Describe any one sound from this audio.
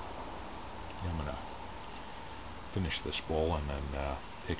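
A man speaks casually close by.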